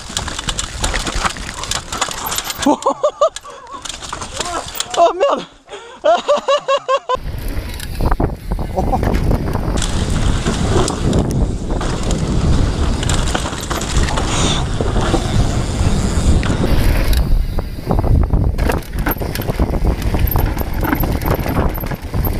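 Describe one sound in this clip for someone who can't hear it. Bicycle tyres rumble and rattle over a rough dirt and rock trail.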